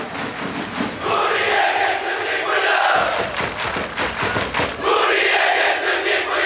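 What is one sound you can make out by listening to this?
A large crowd chants loudly in unison outdoors in a stadium.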